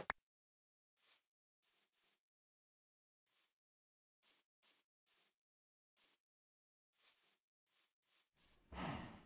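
Footsteps crunch softly on grass at a steady walking pace.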